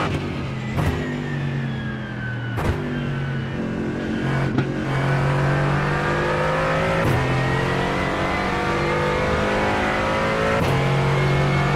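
A gearbox clicks sharply with each gear shift.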